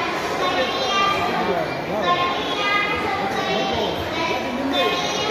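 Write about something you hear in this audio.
A young girl speaks clearly and steadily into a microphone over loudspeakers.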